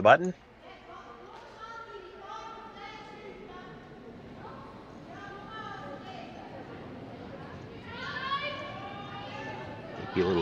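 Young women chat calmly nearby.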